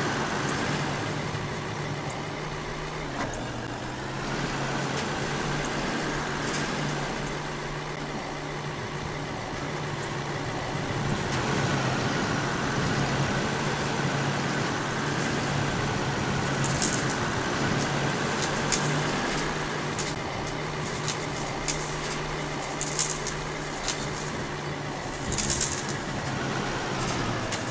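A truck engine drones steadily, shifting down in pitch once.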